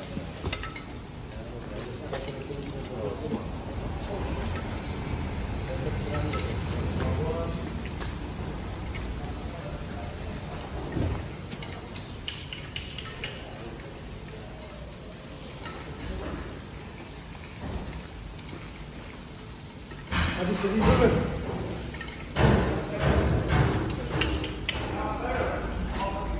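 A knife slices and scrapes through raw meat.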